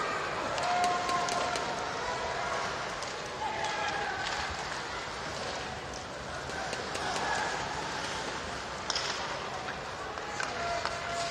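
A crowd murmurs throughout a large echoing arena.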